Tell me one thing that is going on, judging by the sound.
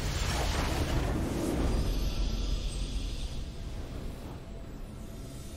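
A video game's victory fanfare swells and then fades.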